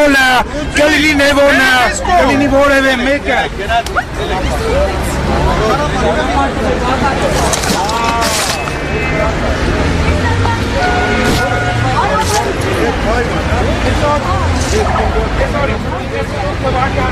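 A crowd of men and women talk and argue outdoors.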